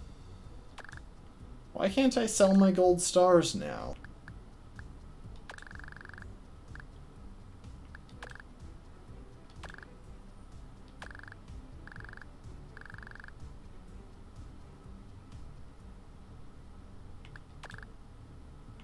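Short electronic beeps sound as game menu choices are made.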